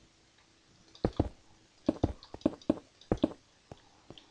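Stone blocks crack and thud as they are broken.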